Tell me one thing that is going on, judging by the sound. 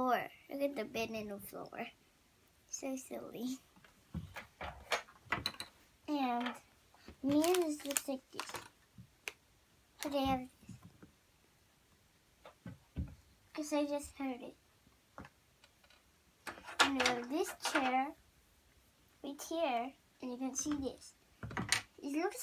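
A young girl talks close by in short bursts.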